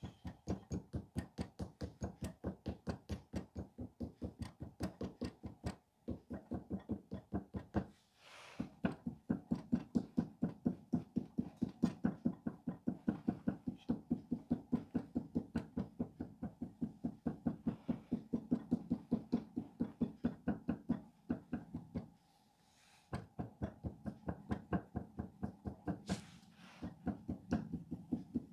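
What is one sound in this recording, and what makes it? A wooden paddle taps rapidly and steadily against soft clay.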